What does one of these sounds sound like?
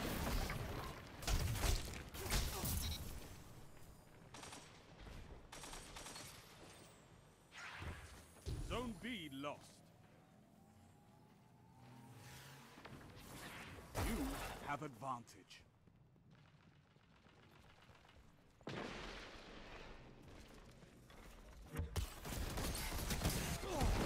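Gunshots go off in quick bursts.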